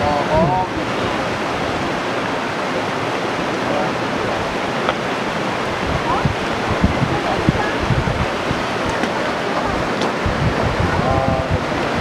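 Young children call out and chatter outdoors.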